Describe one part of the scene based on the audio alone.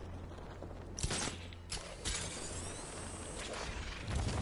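A grappling line fires with a sharp whir.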